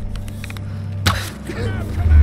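A bowstring snaps sharply as an arrow is loosed.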